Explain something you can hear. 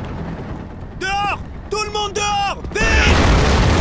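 A man shouts loudly and urgently.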